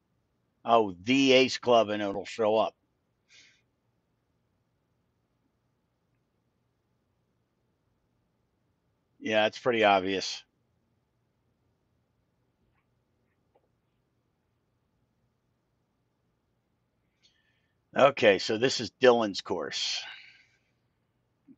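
A middle-aged man speaks calmly and closely into a headset microphone, in short bursts.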